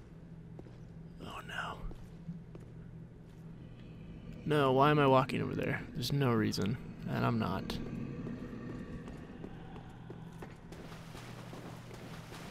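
Armoured footsteps clank on stone.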